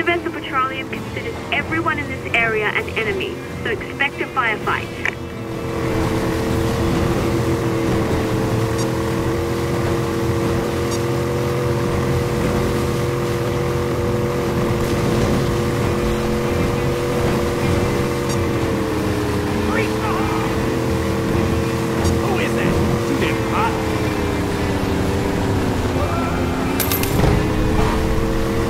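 Water splashes and churns against a speeding boat's hull.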